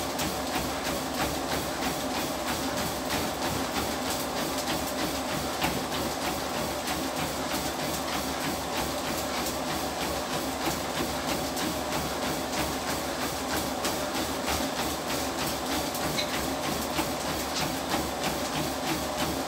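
A treadmill motor hums steadily.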